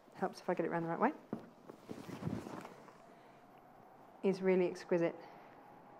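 Fabric rustles as it is shaken and folded.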